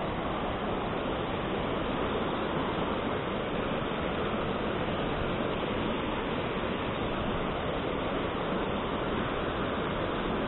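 A fast river rushes loudly over rocks close by.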